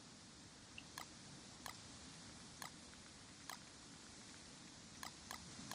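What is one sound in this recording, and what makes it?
Soft game menu clicks tick every second or so.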